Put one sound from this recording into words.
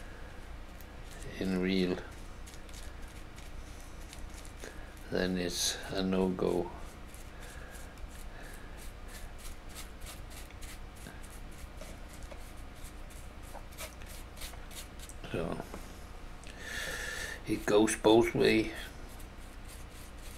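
A small brush taps and scratches softly on a hard surface.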